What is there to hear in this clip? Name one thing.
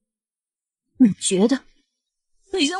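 Another young woman speaks tearfully, close by.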